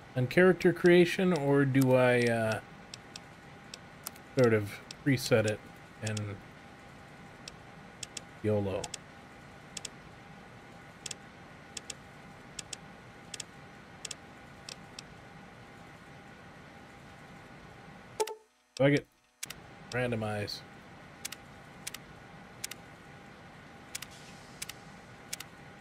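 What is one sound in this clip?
Short interface clicks sound repeatedly.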